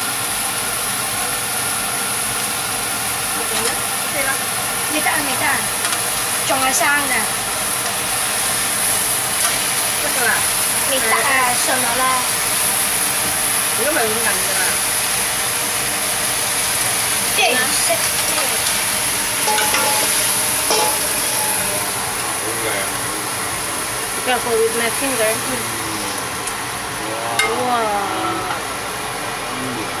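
Meat sizzles steadily in a hot frying pan.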